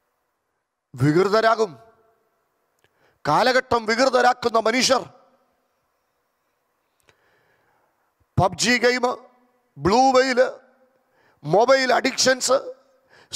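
A man preaches with passion into a microphone, in short bursts with pauses.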